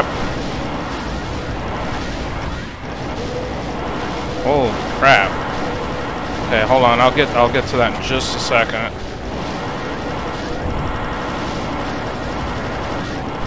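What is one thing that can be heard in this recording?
Rapid energy-gun shots fire and crackle.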